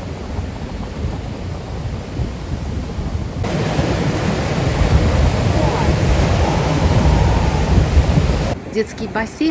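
Waves wash and splash against rocks.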